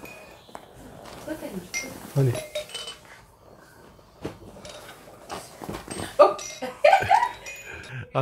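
A baby coos and babbles softly.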